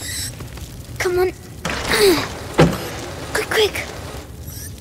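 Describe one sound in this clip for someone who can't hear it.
A young boy urges someone on in an anxious, hushed voice.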